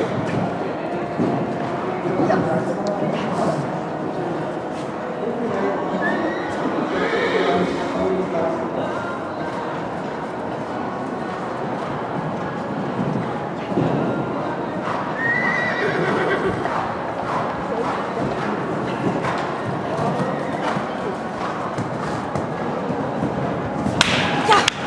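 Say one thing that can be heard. A crowd murmurs in the distance.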